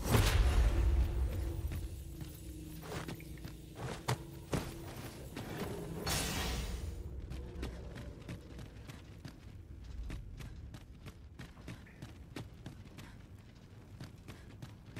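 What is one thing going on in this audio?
Footsteps tap on a stone floor in an echoing space.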